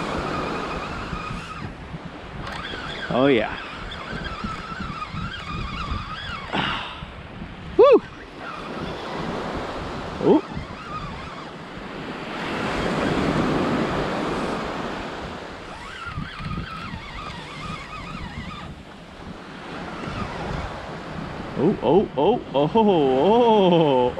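Wind blows past outdoors.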